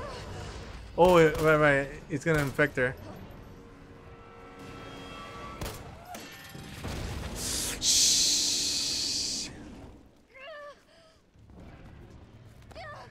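A young woman groans and cries out in pain.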